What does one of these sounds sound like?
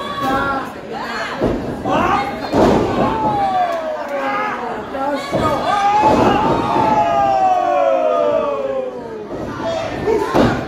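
A crowd in a large hall shouts and cheers loudly.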